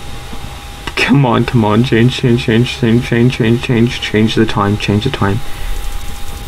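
A young man speaks close to a microphone, in a low drawn-out voice.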